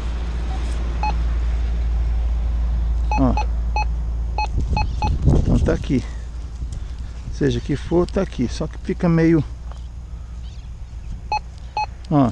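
A metal detector beeps in short, repeated tones.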